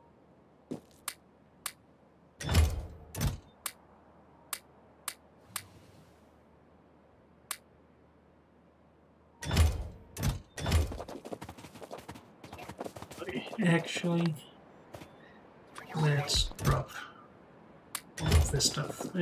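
Short interface clicks sound as items are moved between slots.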